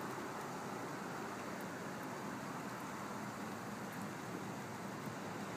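Water drips from the edge of a roof.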